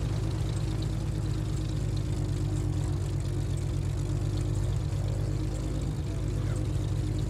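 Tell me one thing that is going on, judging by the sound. A small propeller plane's engine idles with a steady low hum.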